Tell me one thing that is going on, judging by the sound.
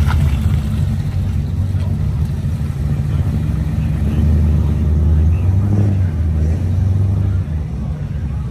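A car engine rumbles deeply as it pulls away and fades.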